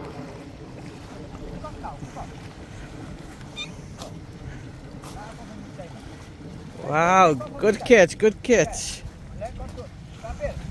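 Water splashes around legs wading through the shallows.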